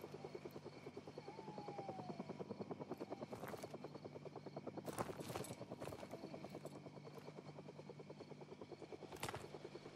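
Footsteps run quickly through rustling grass.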